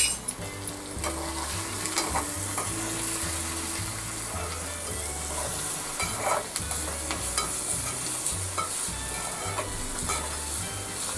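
Food sizzles in a hot pot.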